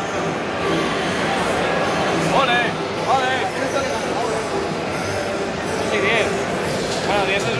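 A crowd murmurs and chatters throughout a large, echoing hall.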